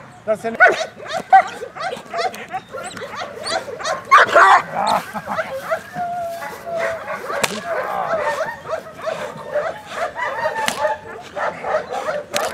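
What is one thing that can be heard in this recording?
A dog barks and growls excitedly.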